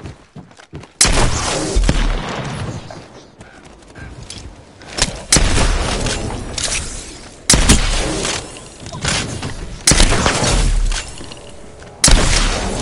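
Gunshots fire in loud, sudden bursts.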